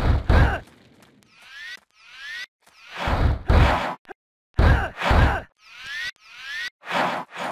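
Magic spell effects whoosh and burst again and again as a fighter attacks.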